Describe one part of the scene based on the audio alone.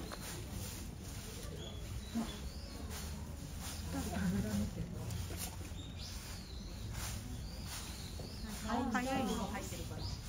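A lion paces over dry leaves, which rustle underfoot.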